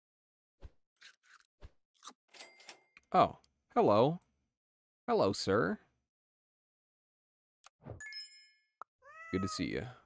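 Short electronic game sounds pop and chime.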